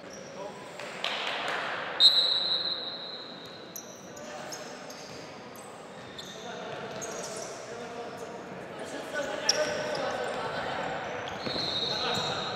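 A ball thuds when kicked.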